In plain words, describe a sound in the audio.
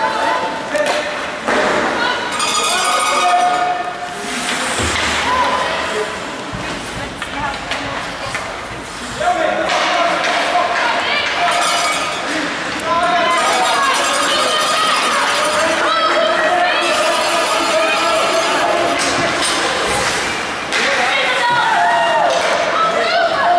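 Spectators call out and cheer in an echoing ice rink.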